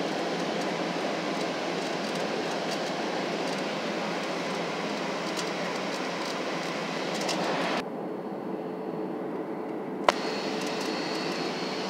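Jet engines roar steadily inside an airplane cabin.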